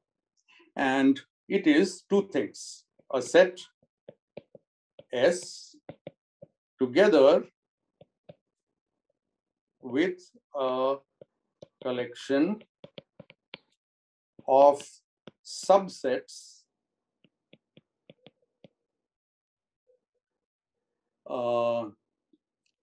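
A man speaks calmly in short phrases through an online call.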